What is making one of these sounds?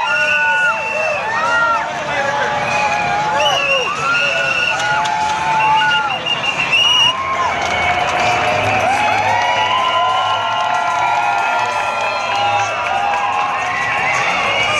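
A large crowd cheers and chants loudly outdoors.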